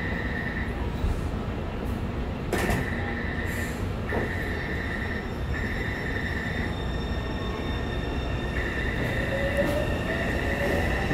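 A platform door alarm beeps in repeated bursts.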